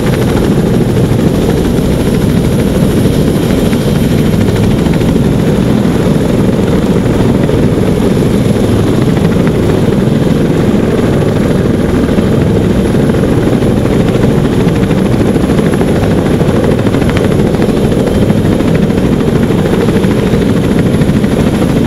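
A helicopter's engines whine steadily.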